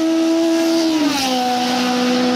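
A racing car engine's pitch drops sharply as the car passes close by.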